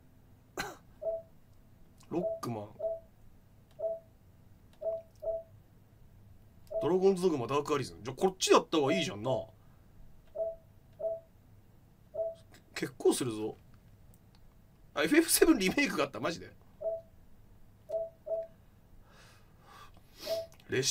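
Short electronic menu beeps sound repeatedly.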